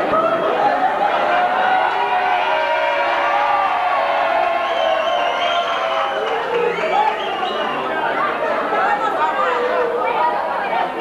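A group of women and men sing together nearby.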